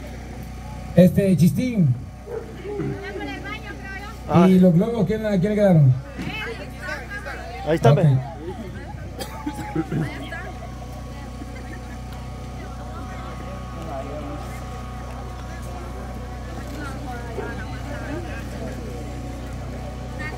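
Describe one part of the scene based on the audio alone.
A crowd of men chatters outdoors in the background.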